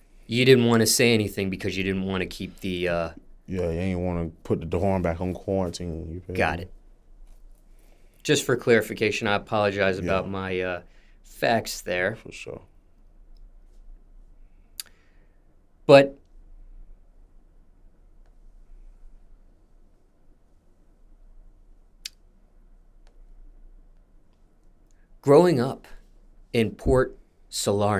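A young man speaks calmly and close to a microphone, with long pauses.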